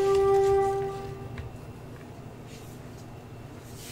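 A knife taps on a wooden cutting board.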